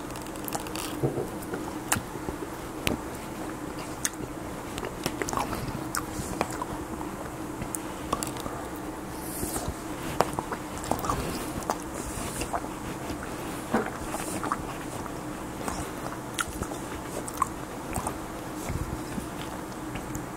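A man chews food close by, with smacking sounds.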